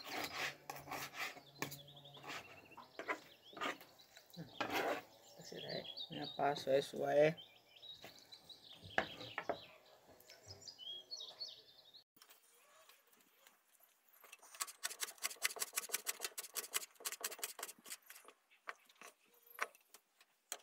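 A knife chops quickly against a cutting board.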